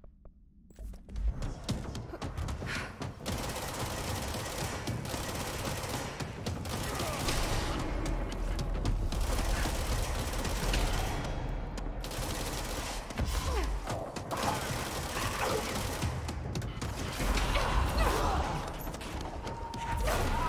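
Gunfire and explosions crackle and rumble in a game fight.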